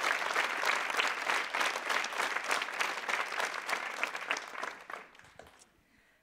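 An audience applauds in a large hall and the clapping fades out.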